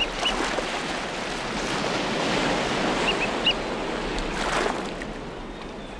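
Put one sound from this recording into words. Surf washes over rocks close by, then quiets.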